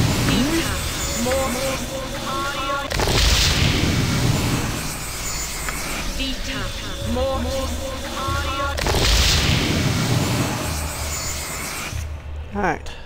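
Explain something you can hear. A magic spell shimmers and chimes again and again.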